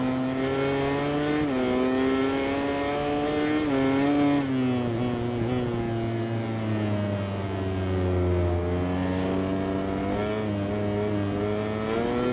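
A motorcycle engine revs hard and high, dropping in pitch with each gear change.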